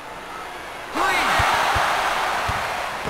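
A crowd suddenly cheers loudly.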